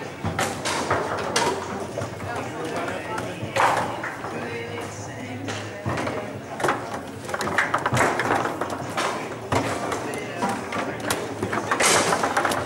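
Foosball rods rattle and spin in their bearings.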